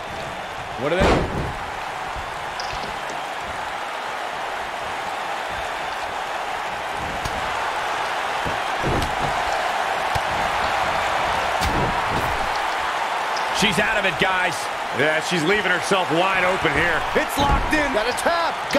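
Heavy thuds sound as bodies slam onto a wrestling mat.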